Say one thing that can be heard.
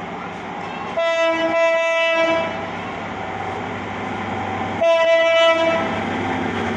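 A train horn blows loudly, twice.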